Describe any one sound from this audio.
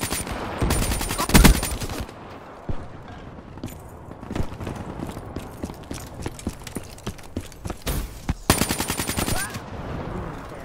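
Rapid gunfire rattles in short bursts.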